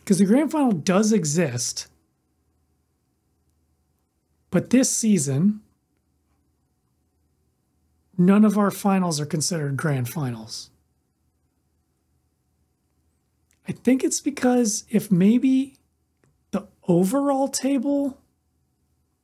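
A man talks with animation, close to a microphone, in short bursts with pauses.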